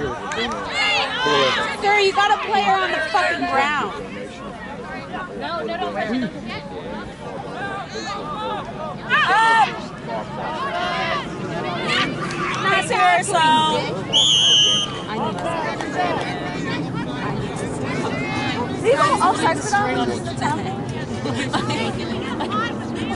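Women and girls shout and call out across an open outdoor field.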